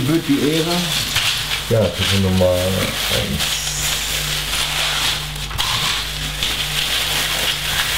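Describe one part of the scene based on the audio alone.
Plastic packaging crinkles.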